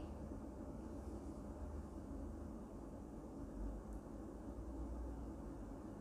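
A young woman talks calmly, close to a microphone.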